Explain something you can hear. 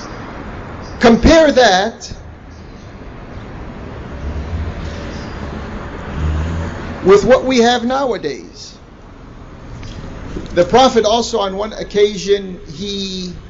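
A man speaks slowly and calmly into a microphone, heard through loudspeakers in a large room.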